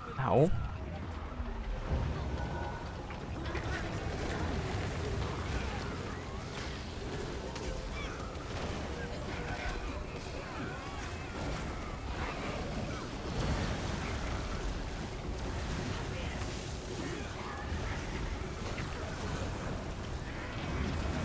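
Game spells crackle and explode in a busy battle.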